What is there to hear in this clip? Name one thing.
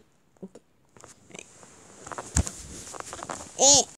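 Fur brushes and rustles against the microphone.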